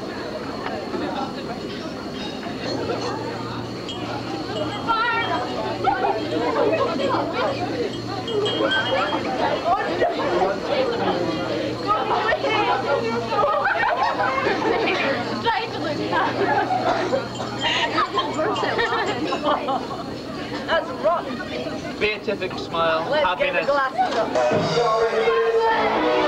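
A crowd of people chatters in a busy room.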